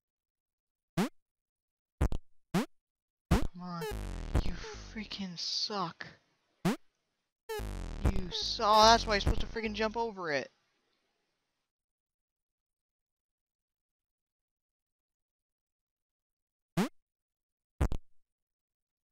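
Short electronic blips sound as small game figures jump.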